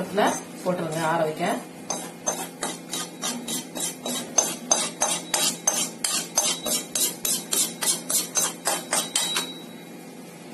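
A sieve is tapped rapidly against the rim of a metal bowl.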